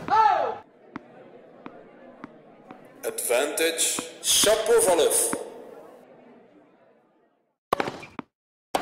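A tennis ball is hit with a racket with sharp pops.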